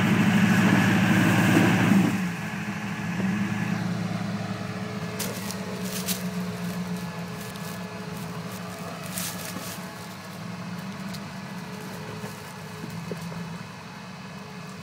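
An off-road engine revs hard, then rumbles steadily at low speed.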